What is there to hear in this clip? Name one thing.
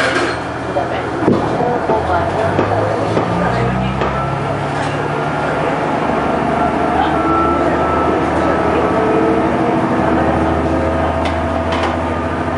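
A train's diesel engine rumbles steadily as the train rolls along the track.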